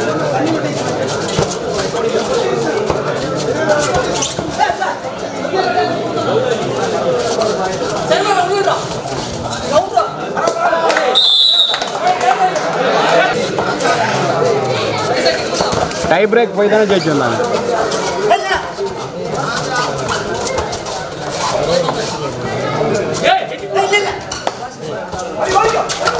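A large crowd cheers and shouts noisily.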